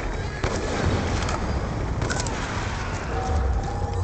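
A fire roars.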